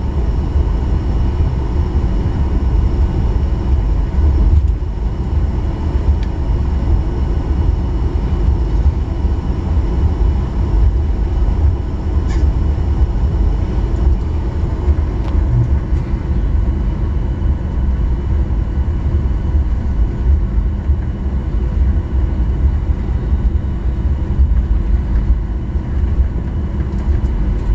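A jet engine roars steadily inside an airplane cabin.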